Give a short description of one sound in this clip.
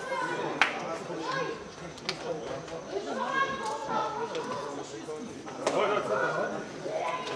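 Several young men talk and call out nearby outdoors.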